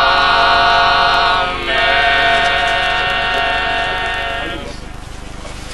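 A man reads out loudly in a chanting voice.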